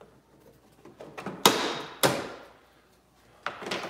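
Adhesive tape is peeled and torn off with sharp ripping sounds.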